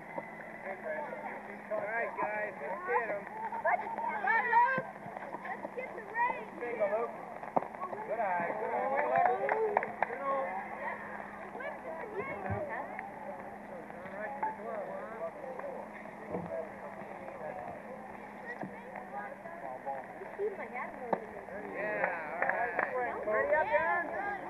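Children shout and chatter with excitement outdoors.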